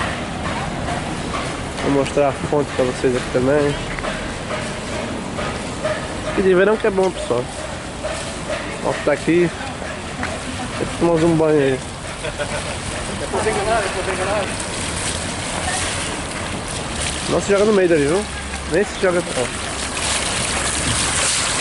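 A fountain splashes steadily, growing louder up close.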